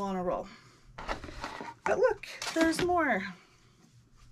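Paper crinkles and rustles in a woman's hands.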